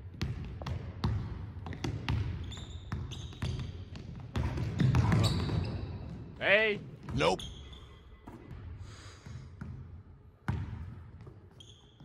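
A ball bounces on a hard wooden floor, echoing in a large hall.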